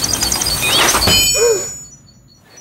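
A small bird chirps loudly.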